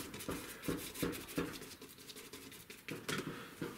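A stiff brush dabs and scrubs paint onto paper.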